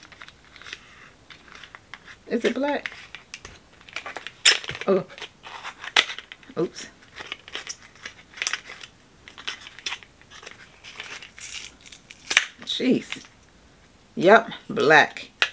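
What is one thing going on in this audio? Plastic packaging crinkles and clicks in a woman's hands.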